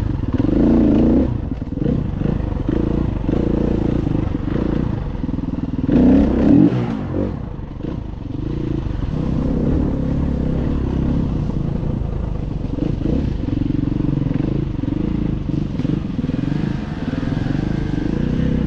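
A dirt bike engine revs and roars up close, rising and falling with the throttle.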